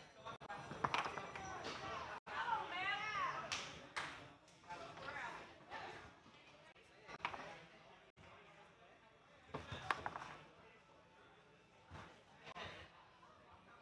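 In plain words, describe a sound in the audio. A foosball ball clacks sharply against plastic players and the table walls.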